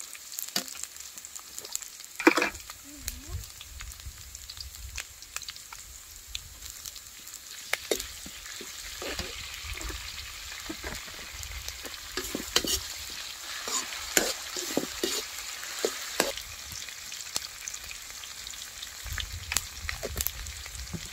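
Vegetables sizzle in a hot wok.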